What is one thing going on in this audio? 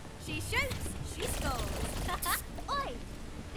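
A futuristic gun fires a quick burst of energy blasts.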